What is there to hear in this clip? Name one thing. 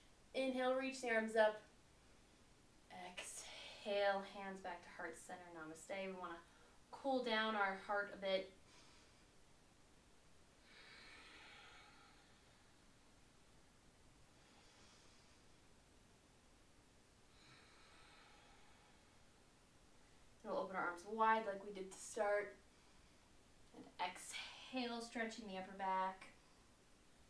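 A young woman speaks calmly and clearly, close by.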